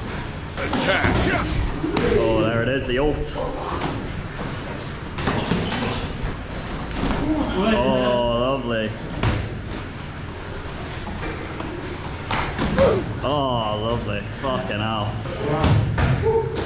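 Boxing gloves thud sharply against bodies and gloves.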